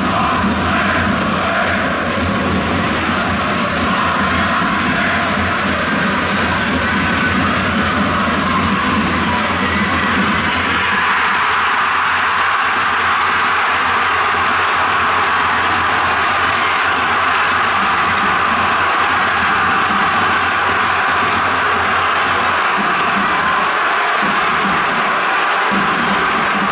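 A large stadium crowd sings and chants loudly together.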